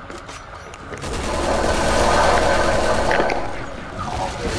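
An explosion bursts loudly nearby.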